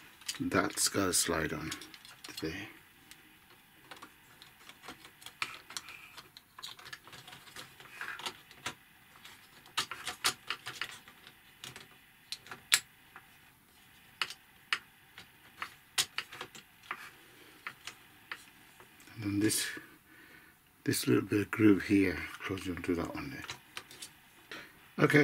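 Small plastic parts click and snap as they are handled.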